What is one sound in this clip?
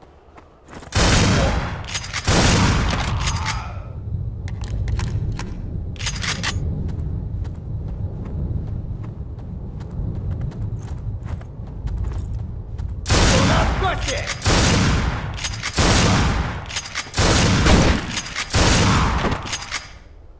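A shotgun fires loud, booming blasts that echo.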